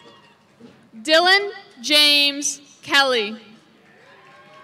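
A young woman reads out a name over a loudspeaker, echoing outdoors.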